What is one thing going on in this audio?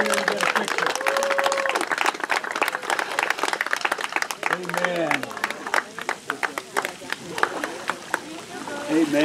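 A crowd claps outdoors.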